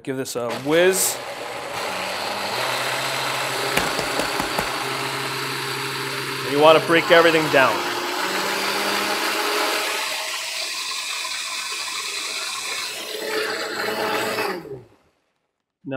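A blender whirs loudly and steadily.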